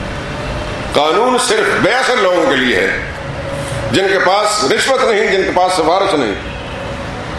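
A middle-aged man speaks forcefully into a microphone, heard through loudspeakers.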